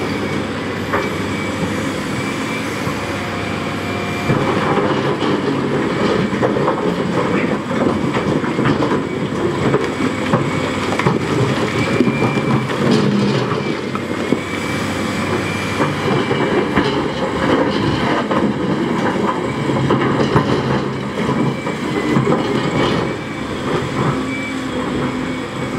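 A metal excavator bucket clanks against stone.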